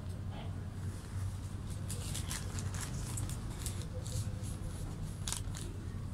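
Fabric rustles against a phone microphone.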